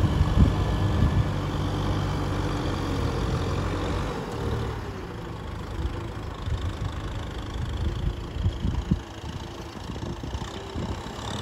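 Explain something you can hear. A tiller churns through wet mud.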